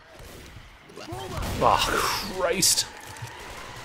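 A creature retches and splashes bile with a gurgling roar.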